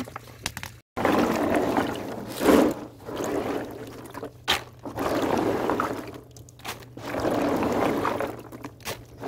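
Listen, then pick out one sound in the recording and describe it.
Peanuts in the shell slosh about in water in a tub.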